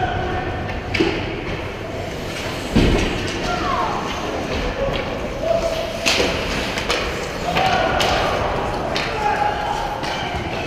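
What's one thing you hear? Hockey sticks and a puck clack sharply in a large echoing rink.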